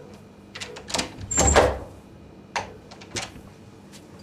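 A door lock clicks and rattles.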